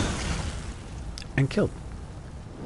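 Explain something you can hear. Fiery magic spells crackle and burst.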